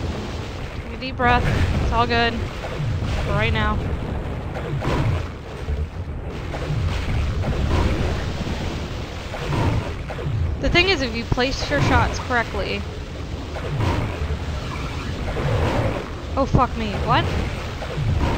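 Game creatures growl and screech.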